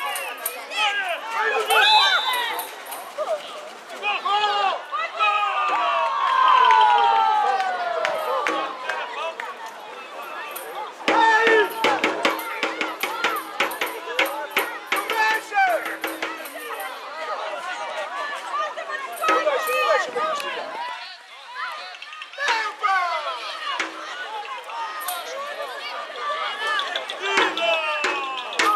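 Children shout and call out outdoors.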